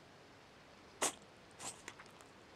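A cat gives a brief soft chirp close by.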